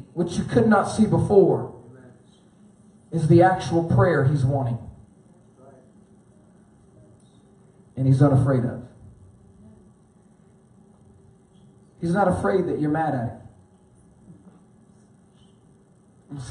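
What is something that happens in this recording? A man preaches into a microphone in short, emphatic phrases with pauses between them.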